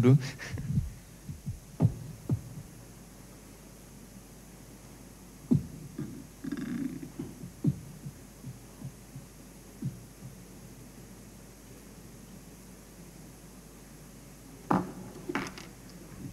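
Small knocks and rustles sound as a man handles equipment.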